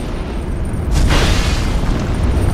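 A heavy blow lands with a crunching crash.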